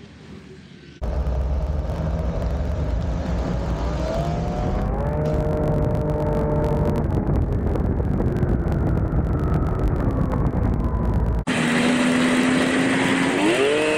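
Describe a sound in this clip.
A snowmobile engine roars up close while riding.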